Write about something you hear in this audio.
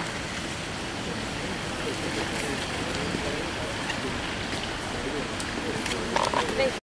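Footsteps scuff on stone paving and steps.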